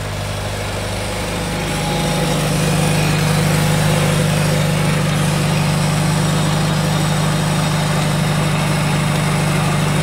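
A tractor engine runs with a steady low drone, rising slightly in pitch.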